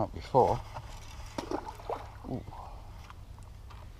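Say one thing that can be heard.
A lure splashes lightly into water.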